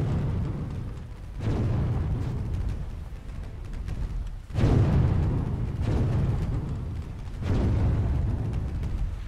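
A boat's engine rumbles as it moves through water.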